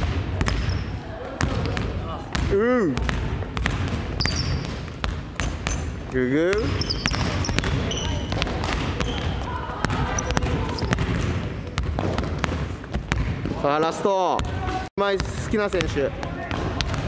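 A basketball bounces repeatedly on a wooden floor in an echoing hall.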